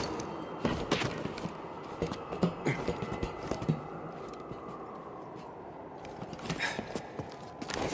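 Hands and boots thud and scrape against a climbing wall.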